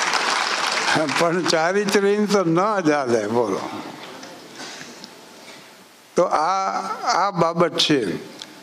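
An elderly man sings through a microphone.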